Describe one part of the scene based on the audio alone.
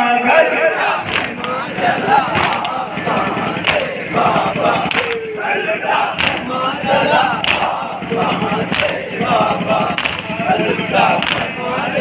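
Hands beat on chests in a steady rhythm.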